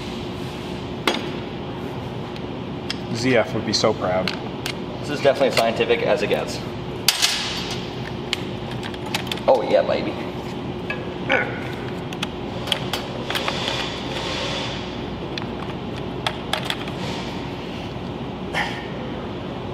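Metal parts clink and tap close by.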